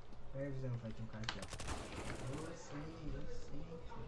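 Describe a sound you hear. A submachine gun fires a burst of shots.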